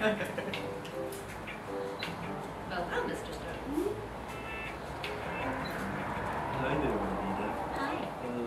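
Light electronic music plays through a television speaker.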